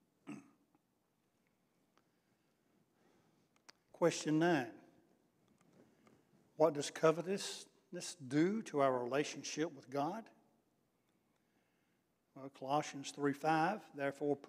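An older man reads aloud calmly into a microphone, in pauses.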